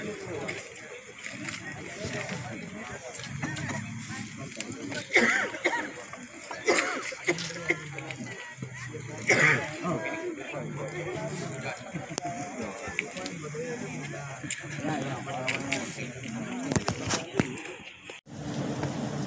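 A crowd of men murmurs and talks outdoors.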